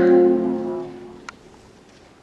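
A big band ends a piece on a held brass chord.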